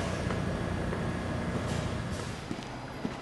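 A low rumble fills an underground station.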